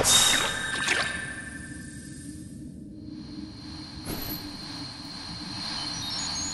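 A magical sparkle twinkles with a soft, high shimmering chime.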